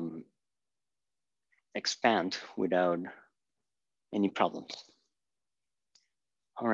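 A man explains calmly in a lecture, close by.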